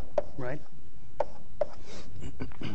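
Chalk taps on a blackboard.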